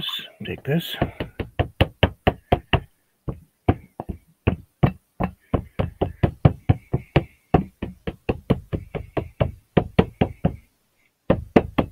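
The mixing ball rattles inside a spray paint can as the can is shaken.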